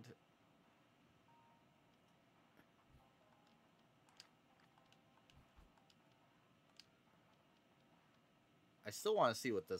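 Soft game menu clicks tick as options change.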